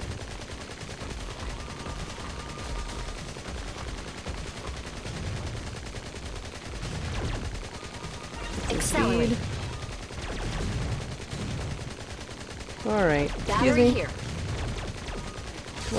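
Rapid game gunfire blasts repeatedly.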